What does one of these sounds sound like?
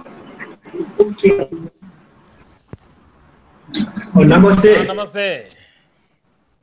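A young man speaks over an online call.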